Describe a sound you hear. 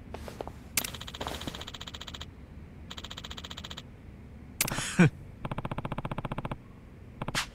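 Rapid soft electronic blips tick in short bursts.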